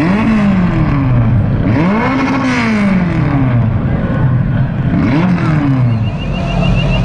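Car engines rev loudly, rising and falling in pitch.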